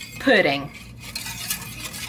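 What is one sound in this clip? A whisk clinks against a metal pan.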